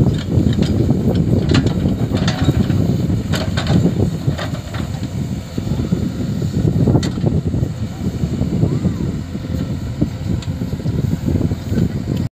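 A backhoe bucket scrapes and scoops dry soil.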